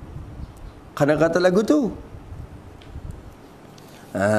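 A man recites in a melodic chanting voice through a microphone.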